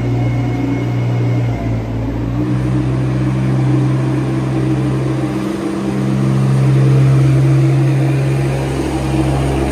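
A small tractor engine hums steadily close by.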